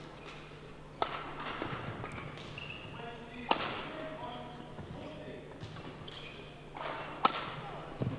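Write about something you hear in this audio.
A racket strikes a shuttlecock with sharp smacks, echoing in a large hall.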